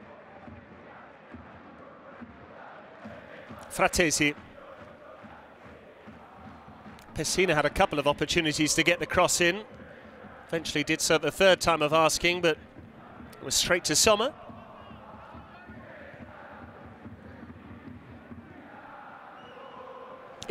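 A stadium crowd murmurs and chants steadily in the distance.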